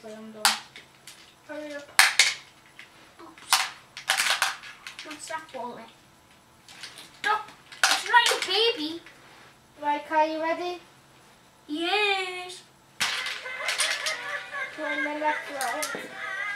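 Plastic toy pieces click and rattle.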